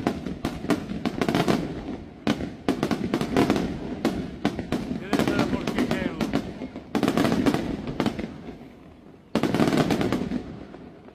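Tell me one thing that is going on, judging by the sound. Fireworks crackle loudly after each burst.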